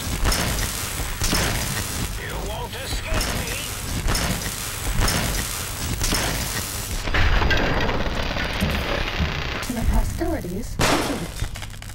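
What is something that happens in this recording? A weapon fires crackling electric blasts again and again.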